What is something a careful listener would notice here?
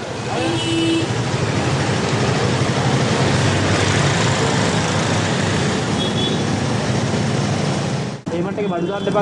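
Heavy traffic engines rumble and idle in a busy street.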